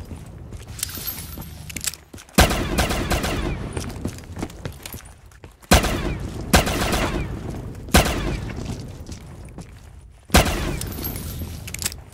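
An electric weapon crackles and zaps.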